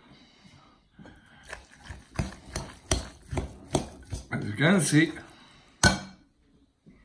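A metal fork clinks against a glass bowl.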